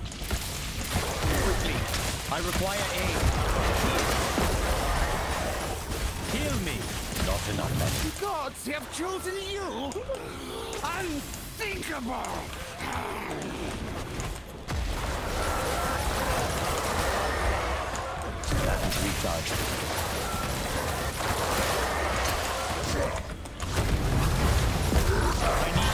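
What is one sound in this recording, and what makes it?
Magic spells crackle and burst in a fast fight with monsters.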